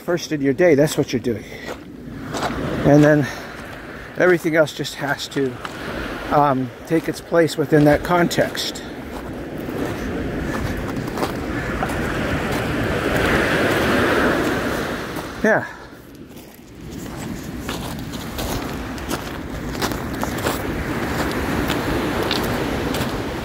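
Small waves wash onto the shore.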